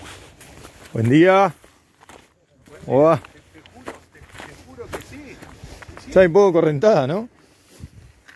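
A man speaks loudly nearby outdoors.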